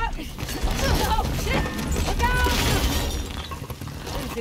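A cart crashes loudly into a wall.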